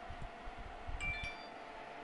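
A short electronic menu chime rings.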